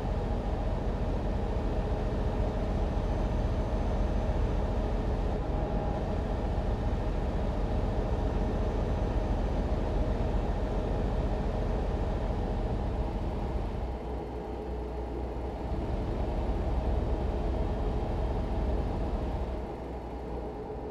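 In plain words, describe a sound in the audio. Tyres roll over a road with a steady rumble.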